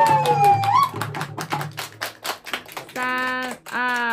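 People clap their hands in rhythm.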